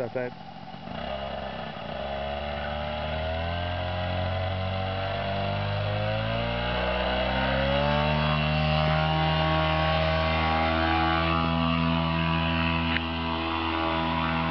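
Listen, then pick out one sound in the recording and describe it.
A small propeller engine revs up and roars loudly.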